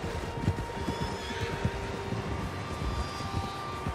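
Hooves splash through shallow water.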